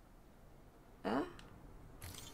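A man speaks briefly, heard through a microphone.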